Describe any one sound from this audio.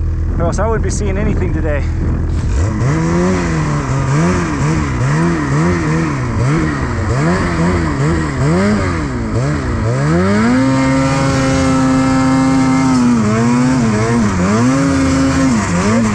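Powder snow hisses and sprays under a snowmobile.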